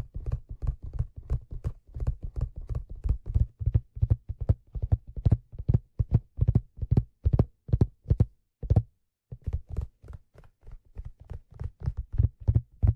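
Fingers tap and scratch on a leather cap close up, in quick soft strokes.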